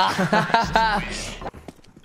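A young man laughs.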